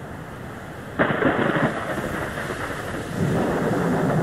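Thunder cracks and rumbles overhead.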